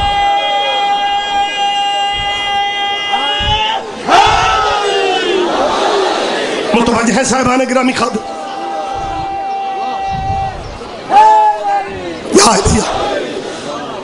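A man chants loudly through a microphone and loudspeaker.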